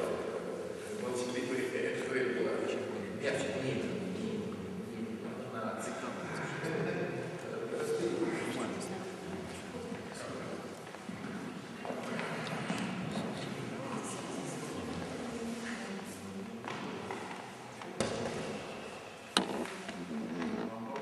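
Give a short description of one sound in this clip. A man speaks calmly nearby in an echoing hall.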